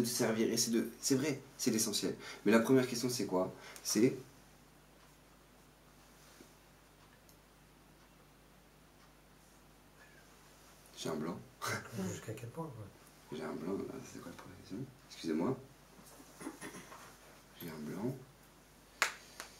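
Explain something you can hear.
A young man speaks calmly and closely, pausing often.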